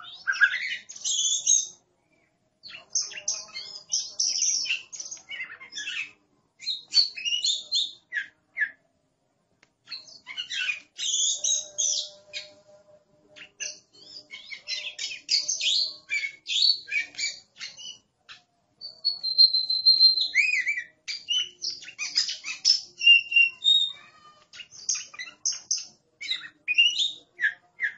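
A songbird sings loud, varied whistling phrases with short pauses between them.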